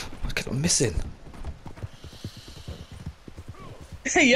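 A horse gallops, its hooves thudding steadily on soft ground.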